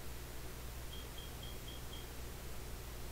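Quick, soft electronic beeps tick in a short series.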